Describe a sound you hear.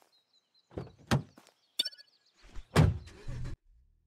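A car door opens and shuts.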